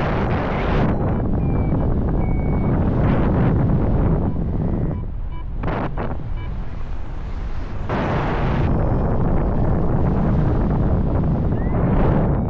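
Strong wind rushes and buffets loudly past a microphone high in the open air.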